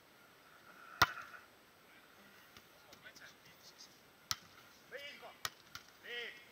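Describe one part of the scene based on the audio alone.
A volleyball is struck with a sharp thump.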